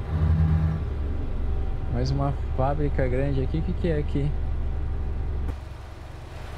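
A truck engine hums low and steady.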